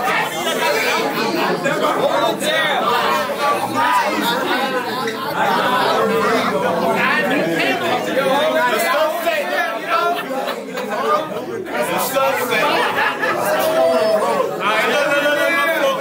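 A crowd murmurs and chatters around them.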